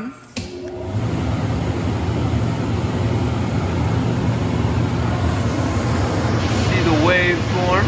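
An electrical machine hums steadily and loudly.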